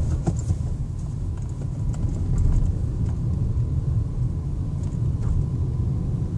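A car engine rumbles steadily from inside the moving car.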